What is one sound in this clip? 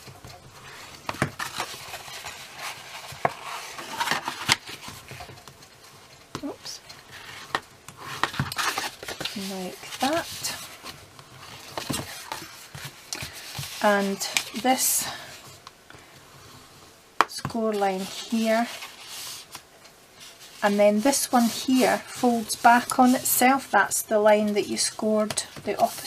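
A hard tool scrapes along a paper fold as it is creased.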